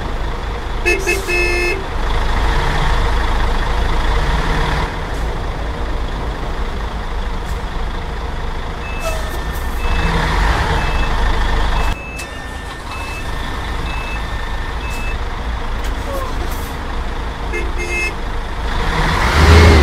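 A bus engine rumbles steadily at low speed.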